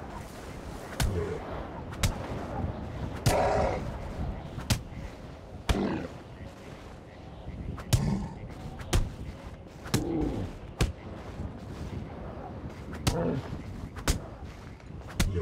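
Heavy punches land with dull thuds, again and again.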